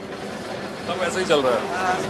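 A tram rumbles along a street.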